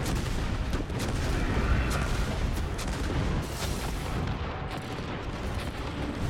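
Explosions burst with loud deep booms.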